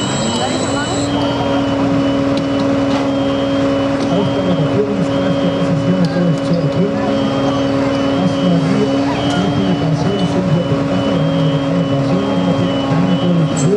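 A fire engine's pump drones steadily nearby.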